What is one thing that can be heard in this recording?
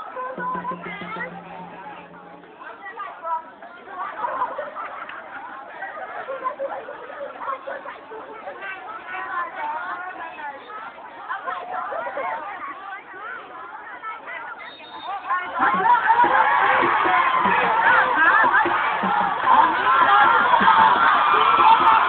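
A crowd of young people chatters and shouts outdoors.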